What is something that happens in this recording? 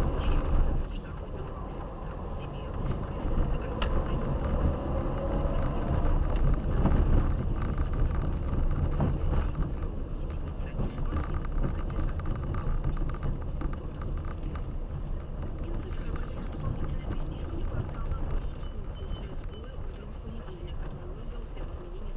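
A car's engine hums steadily from inside the car as it drives.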